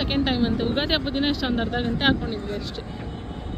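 A middle-aged woman speaks close by.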